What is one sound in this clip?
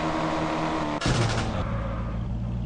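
A car crashes with a sudden loud thud.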